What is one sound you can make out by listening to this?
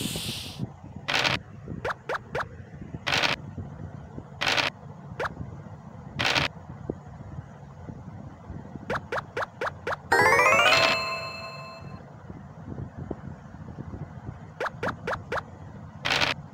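Dice rattle as they roll.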